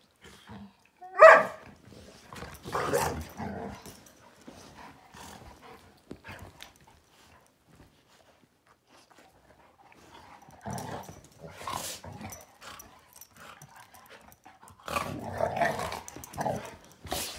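Dogs' paws scuffle on a cushion.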